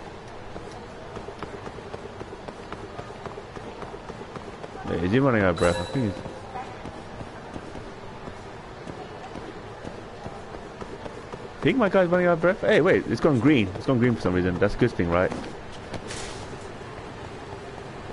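Footsteps patter quickly on pavement as a man runs.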